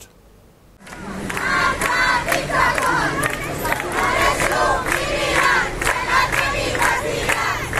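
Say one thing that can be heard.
A crowd of young people chants loudly in unison outdoors.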